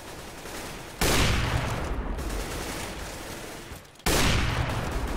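A rifle fires loud shots that ring out and fade.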